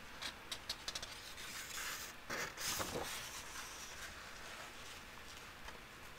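A paper page turns with a soft rustle.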